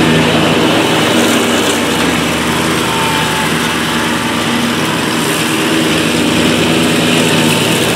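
A zero-turn ride-on mower's engine drones.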